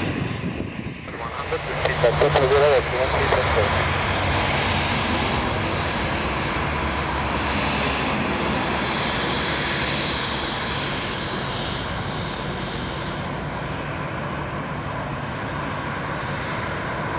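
A jet airliner taxis past with engines whining steadily.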